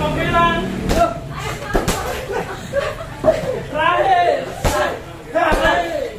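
A kick thuds against a heavy punching bag.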